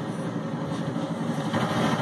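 A video game explosion booms through a television speaker.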